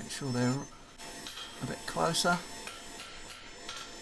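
A hammer strikes metal on an anvil.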